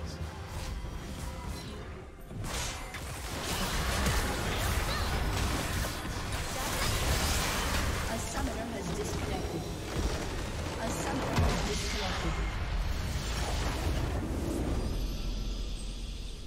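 Game spell effects crackle and whoosh in a busy fight.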